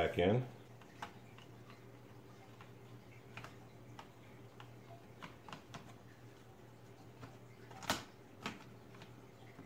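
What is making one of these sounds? Plastic parts click and knock as a battery is worked out of a laptop.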